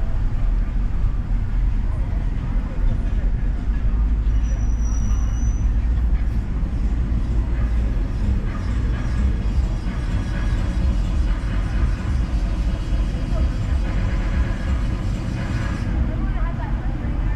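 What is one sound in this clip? A car engine hums steadily.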